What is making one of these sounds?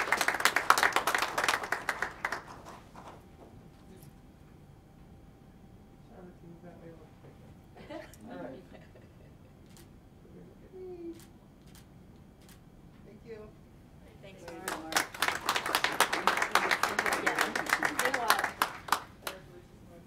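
A group of people applauds.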